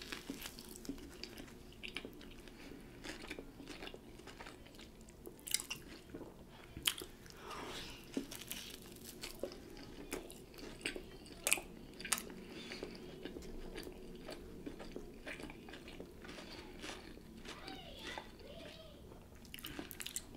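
A woman chews a crusty sandwich close to a microphone, with wet smacking sounds.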